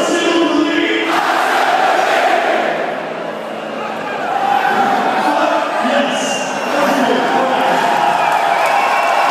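A large crowd cheers and roars loudly in a big echoing hall.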